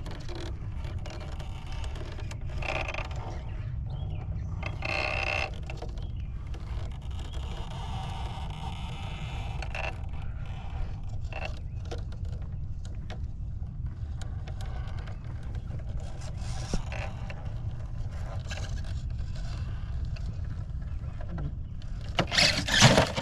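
A small electric motor whines as a toy truck crawls over rock.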